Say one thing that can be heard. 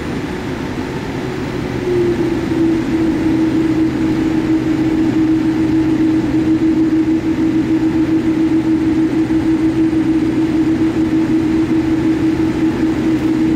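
Jet engines roar steadily with a low hum inside an airliner cabin as it rolls along.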